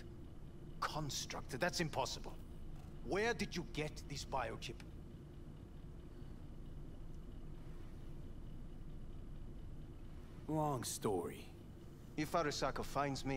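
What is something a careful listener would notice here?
A middle-aged man speaks tensely and close by.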